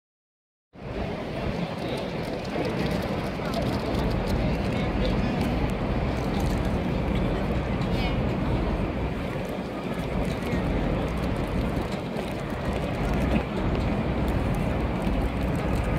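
A busy city crowd murmurs outdoors.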